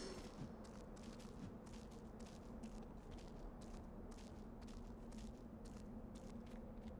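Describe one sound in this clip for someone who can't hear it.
Hands and feet scrape against a stone wall in quick, repeated grabs while climbing.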